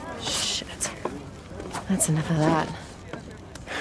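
A bonfire crackles.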